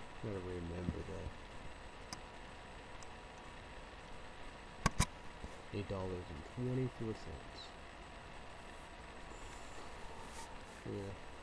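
A man speaks in short, quiet bursts close to the microphone.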